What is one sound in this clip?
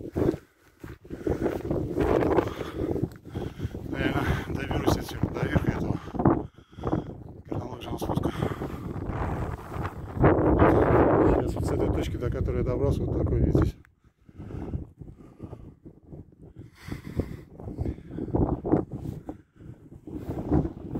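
Wind gusts loudly across an open hillside.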